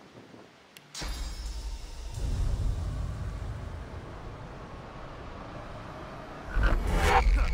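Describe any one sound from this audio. A magic spell rumbles with a deep, heavy roar.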